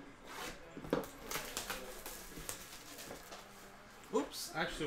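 Plastic wrap crinkles and tears as it is pulled off a box.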